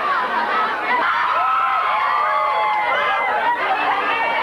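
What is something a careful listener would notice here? A teenage girl speaks into a microphone over a loudspeaker.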